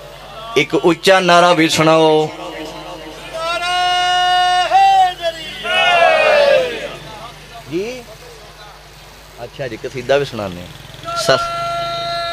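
A man chants and recites loudly through loudspeakers.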